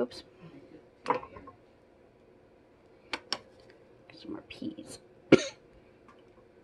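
A plastic spoon scrapes and clinks against a metal pot.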